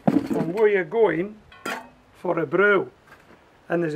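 A metal pan clinks as it is set down on a scale.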